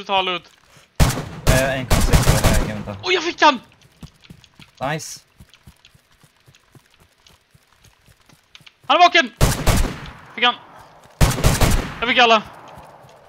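A rifle fires several gunshots.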